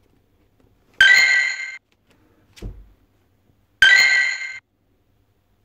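Game chimes ring out.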